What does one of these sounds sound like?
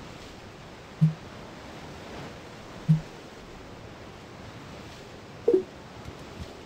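Short soft menu blips sound as options are selected in a game.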